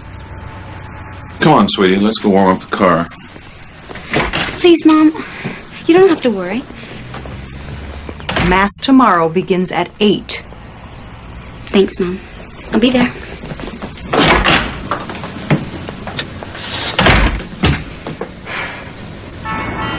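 A young woman answers in a hesitant, upset voice.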